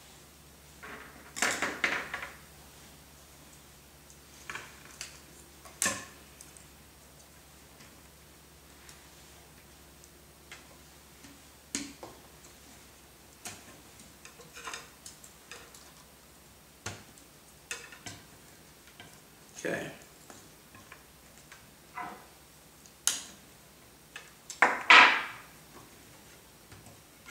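Small plastic parts click and clatter as hands handle a model helicopter.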